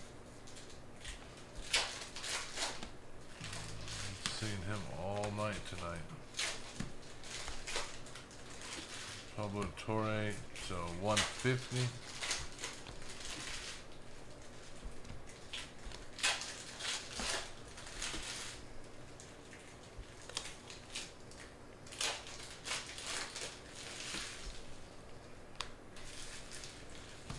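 Trading cards rustle and flick as hands sort through them.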